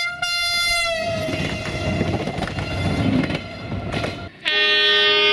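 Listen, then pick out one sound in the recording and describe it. A train rushes past close by with a loud roaring clatter.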